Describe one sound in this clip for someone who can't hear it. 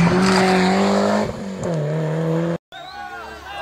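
A rally car engine roars loudly as the car speeds past close by.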